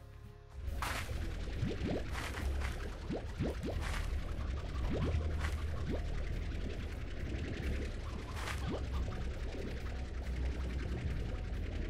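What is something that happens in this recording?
A vacuum gun hums steadily as it sucks in vegetables.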